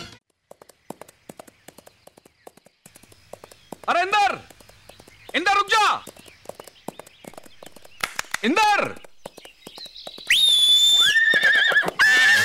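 A horse gallops with rapid hoofbeats.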